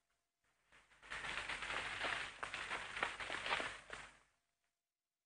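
A plastic sheet rustles and crinkles.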